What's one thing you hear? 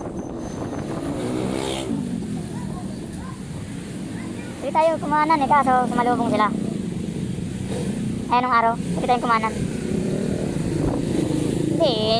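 Other motorcycles' engines pass nearby.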